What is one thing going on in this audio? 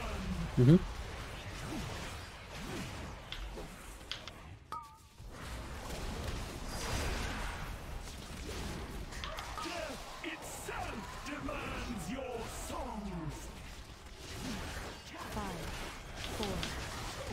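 Spell effects whoosh and crackle in a fast fantasy battle.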